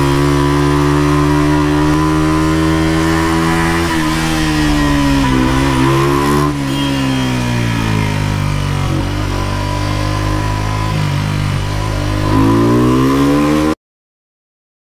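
A motorcycle engine roars loudly, its pitch rising and falling as it speeds up and slows down.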